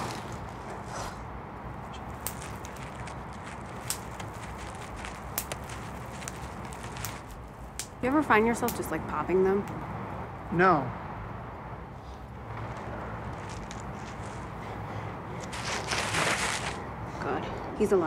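Plastic bubble wrap crinkles and crackles under handling.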